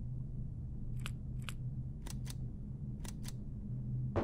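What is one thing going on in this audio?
Soft electronic ticks sound as a menu selection changes.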